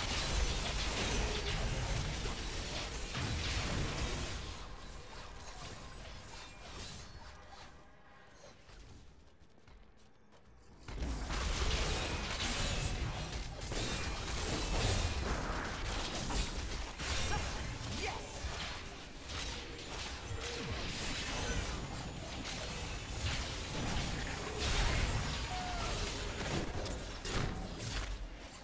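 Game spells and combat effects crash and boom in quick bursts.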